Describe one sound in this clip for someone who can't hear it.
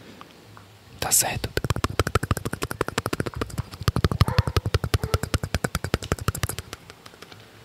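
A young man makes soft mouth sounds very close to a microphone.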